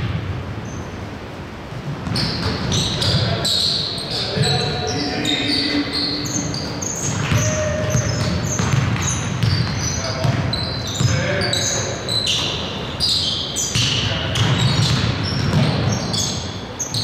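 A basketball bounces with dull thumps in a large echoing hall.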